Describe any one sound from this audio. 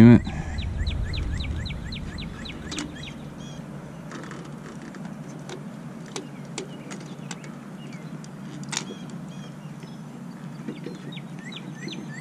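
Metal clips and wires clink and rattle against a metal tube.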